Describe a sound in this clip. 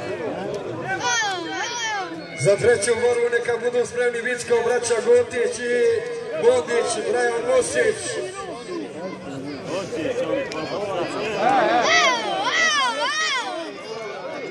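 Men shout and call out loudly close by.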